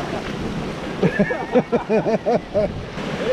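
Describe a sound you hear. A man laughs in short bursts nearby.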